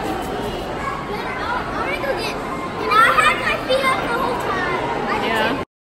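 A young boy laughs close by.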